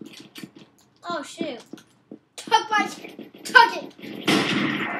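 A boy talks close to a microphone.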